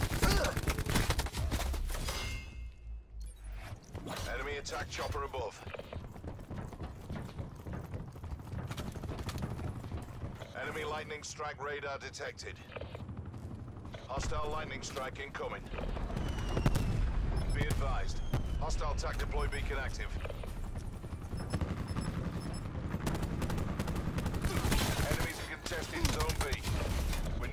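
Rapid gunfire bursts out loudly.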